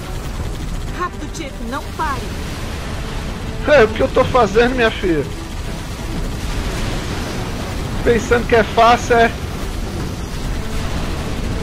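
A game's machine gun fires in rapid bursts.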